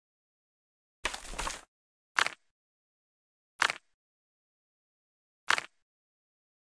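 Short clicks sound now and then.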